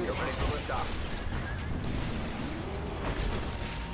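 Laser weapons fire in sharp bursts.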